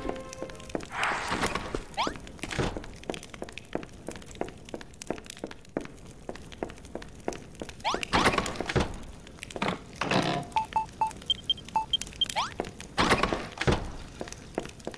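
A wooden door swings open with a whoosh.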